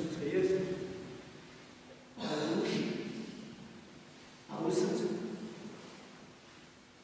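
An elderly man speaks slowly and calmly through a microphone, echoing in a large reverberant hall.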